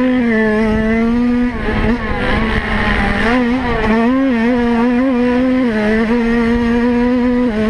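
Wind buffets and rumbles against the rider's helmet.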